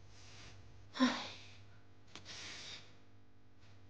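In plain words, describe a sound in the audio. A young woman sighs wearily.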